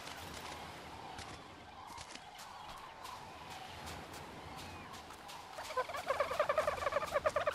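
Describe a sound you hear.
Footsteps crunch on sand and pebbles.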